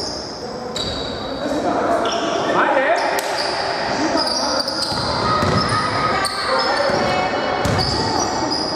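Men shout to each other across the hall.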